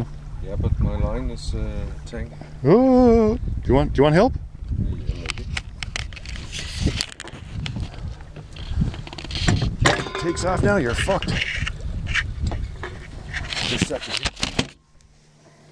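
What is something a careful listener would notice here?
Water laps and splashes gently against the side of a small boat.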